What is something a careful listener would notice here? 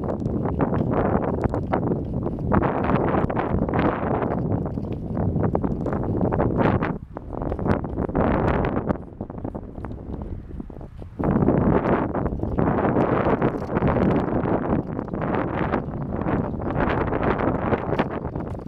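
Wind buffets hard and rumbles in gusts outdoors.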